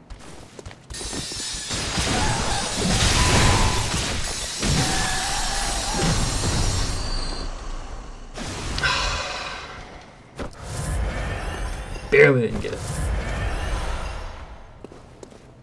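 A loud burst of fiery, roaring combat noise fills the air.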